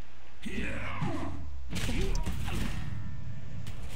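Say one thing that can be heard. A heavy crash thuds with a low rumble.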